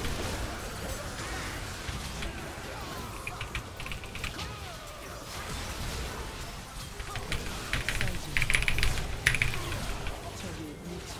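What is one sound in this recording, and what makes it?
Electronic spell and hit effects crackle and burst.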